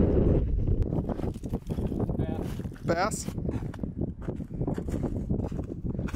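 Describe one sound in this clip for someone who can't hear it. Boots crunch and scrape on ice nearby.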